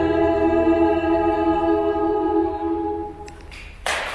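A choir sings a held chord in a reverberant hall.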